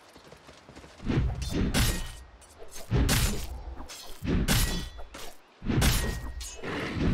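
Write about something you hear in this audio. Game spell effects burst and whoosh in loud blasts.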